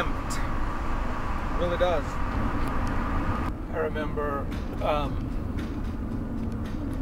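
A car engine hums with a low, steady rumble.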